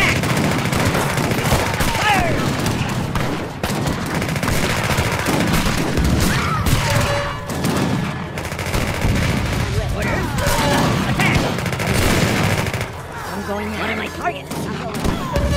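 Muskets crackle and pop in a busy battle.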